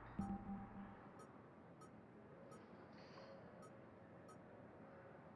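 Short electronic menu clicks tick several times in quick succession.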